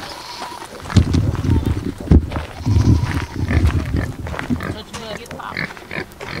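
Pigs grunt and snuffle close by.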